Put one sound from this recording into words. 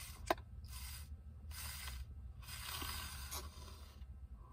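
A young woman slurps a drink loudly through a straw, close by.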